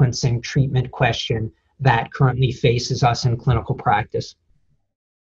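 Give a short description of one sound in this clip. A middle-aged man speaks calmly and close to a microphone, as if on an online call.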